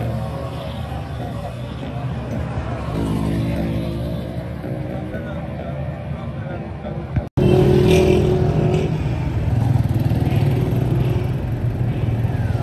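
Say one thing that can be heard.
A small motorcycle engine hums along a street.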